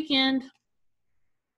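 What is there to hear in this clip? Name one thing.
A middle-aged woman speaks briefly through a computer microphone.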